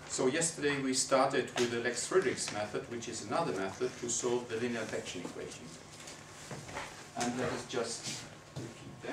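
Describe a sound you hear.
A man lectures calmly.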